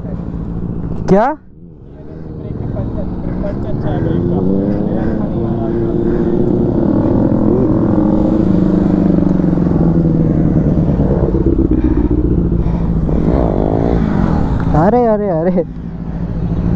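A motorcycle engine sharply revs up nearby.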